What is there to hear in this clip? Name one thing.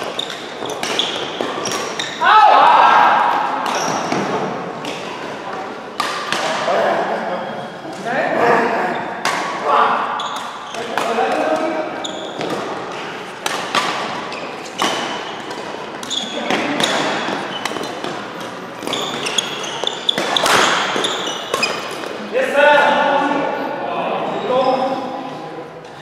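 Badminton rackets strike a shuttlecock back and forth in a large echoing hall.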